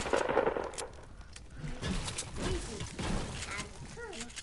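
A gun fires several loud shots.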